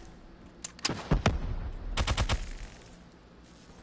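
An explosion booms and debris crashes.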